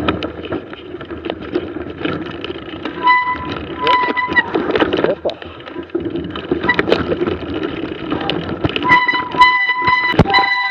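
Bicycle tyres crunch through deep snow.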